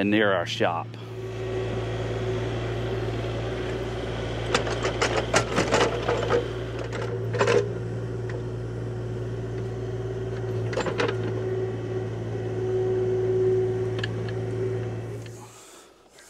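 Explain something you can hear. An excavator engine hums steadily.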